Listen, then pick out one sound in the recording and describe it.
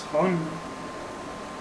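A young man speaks briefly and close to a microphone.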